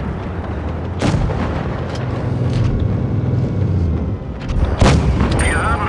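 Tank cannons fire with loud booms.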